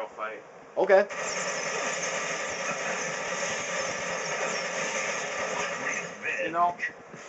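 A weapon fires a long, loud buzzing beam.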